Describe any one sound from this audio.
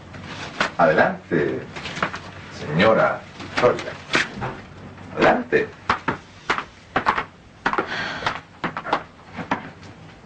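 A woman speaks with emotion nearby.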